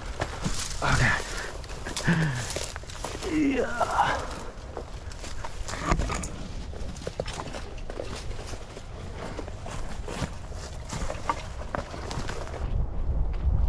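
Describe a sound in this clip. Footsteps crunch through dry leaves and brush.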